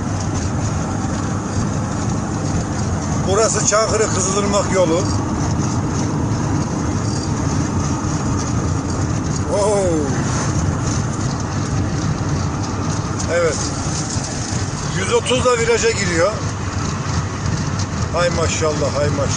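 A vehicle engine hums and tyres rumble steadily on the road.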